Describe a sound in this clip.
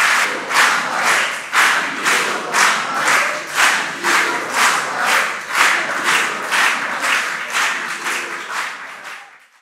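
A crowd claps in a steady rhythm in a large room, then fades away.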